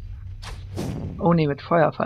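A fireball bursts with a whoosh.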